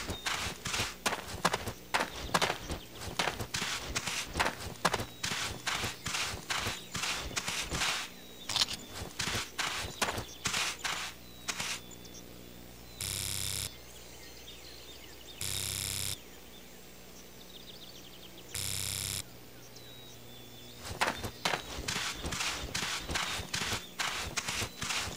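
Footsteps crunch quickly through dry grass and brush.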